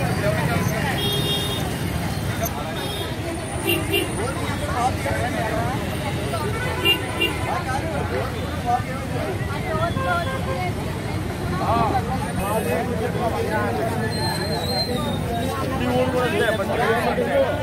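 A crowd of men and women talk and call out all around, outdoors.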